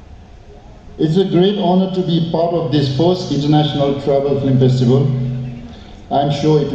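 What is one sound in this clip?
A man speaks loudly through a microphone and loudspeakers, with echo.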